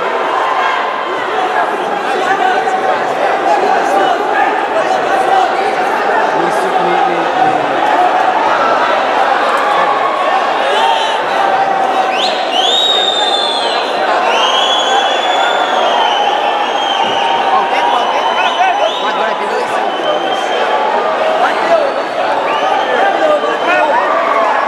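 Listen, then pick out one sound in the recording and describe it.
A large crowd shouts and cheers loudly throughout.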